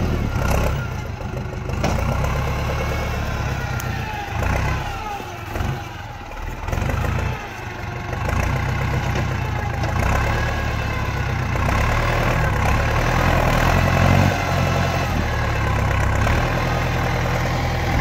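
Tyres crunch through snow.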